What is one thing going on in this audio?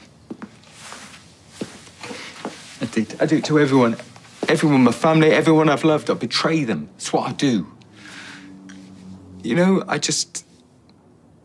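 A middle-aged man sobs and cries out in distress, close by.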